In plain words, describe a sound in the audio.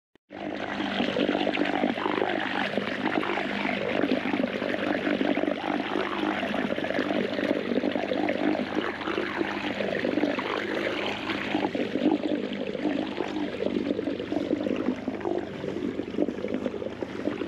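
An outboard motor drones steadily.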